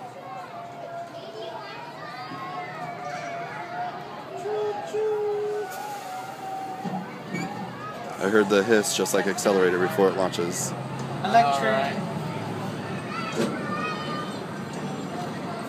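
An open tram car rumbles and hums steadily along its track.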